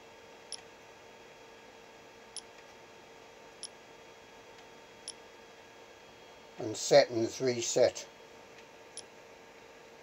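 A touchscreen gives short, faint beeps as it is tapped.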